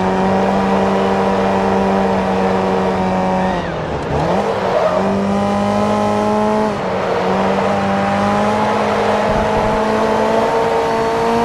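A car engine roars at high revs, dropping in pitch as the driver shifts down and then climbing again.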